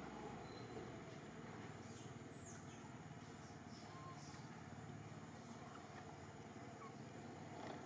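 Fur rustles softly as a monkey grooms another monkey.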